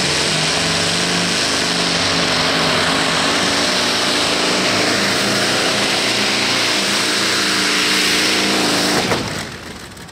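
A pulling tractor's engine roars loudly and steadily.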